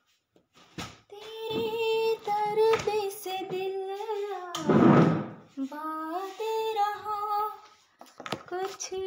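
A young woman sings loudly to music.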